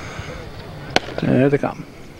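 A starting pistol fires with a sharp crack.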